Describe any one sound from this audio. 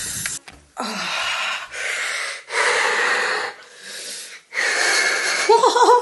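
A young woman coughs hard and repeatedly, close by.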